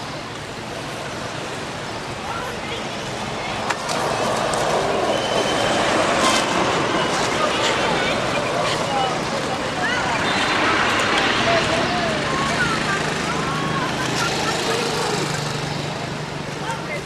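Dry leaves rustle and crunch under a monkey's feet.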